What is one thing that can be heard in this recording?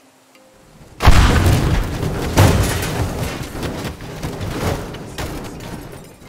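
Computer parts crash and clatter apart in an explosion.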